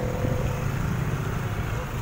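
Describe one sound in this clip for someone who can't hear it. A motorcycle engine runs nearby.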